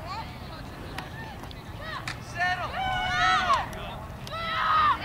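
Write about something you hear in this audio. Boys shout loudly across an open field.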